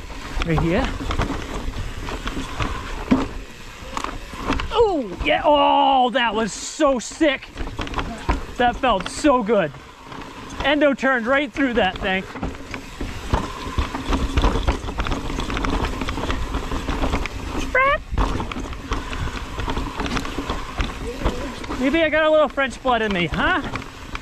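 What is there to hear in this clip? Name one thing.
A bicycle rattles and clatters over roots and rocks.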